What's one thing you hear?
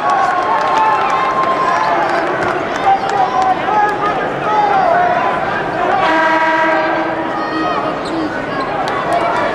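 A large crowd chatters and cheers in a big echoing arena.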